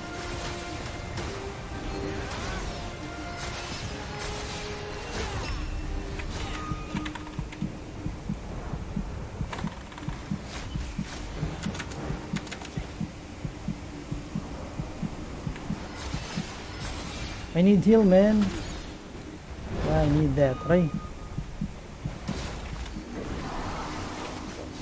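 Game music and battle effects play throughout.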